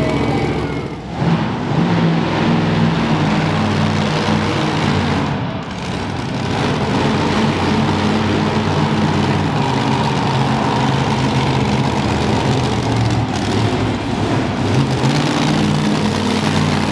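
A monster truck engine roars loudly, revving up and down.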